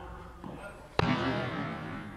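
A padel racket strikes a ball with a sharp pop.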